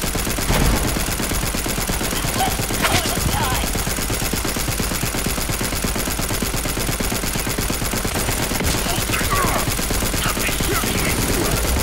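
A video game gun fires in rapid bursts.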